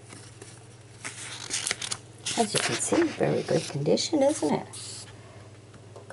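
Paper pages rustle as they are turned.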